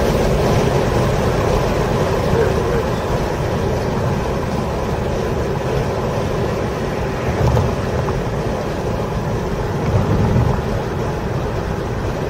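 A car engine hums low and steady from inside the cabin.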